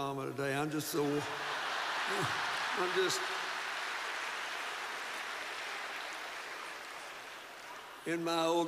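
A large audience laughs.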